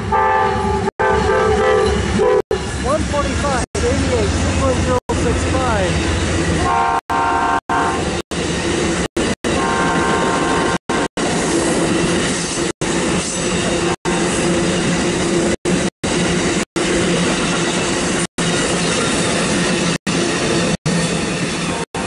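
A long passenger train rumbles past on the rails.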